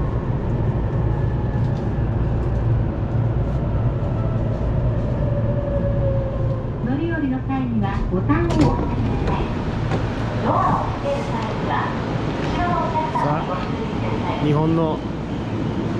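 A train rumbles steadily as it slows to a stop.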